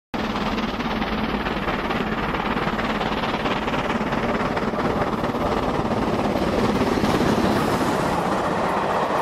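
A model train rumbles along the track, growing louder as it approaches and passes close by.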